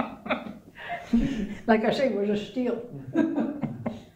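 An elderly woman laughs softly.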